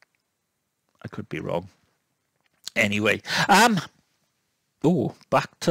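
A middle-aged man speaks calmly into a headset microphone, close and clear, with short pauses.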